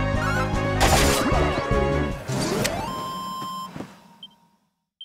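A blade strikes with a loud crashing impact.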